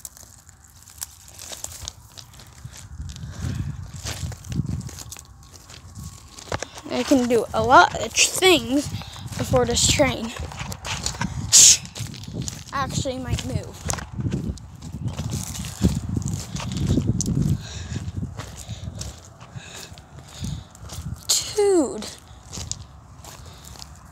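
Footsteps crunch on loose gravel.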